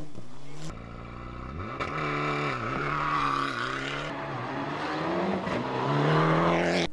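A rally car engine revs hard and roars as the car accelerates away.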